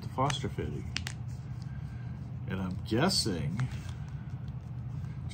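A plastic bag crinkles between fingers.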